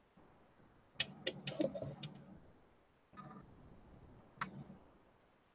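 A small metal tool clicks and taps sharply a few times.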